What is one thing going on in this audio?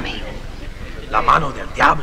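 A man speaks in a low, grave voice nearby.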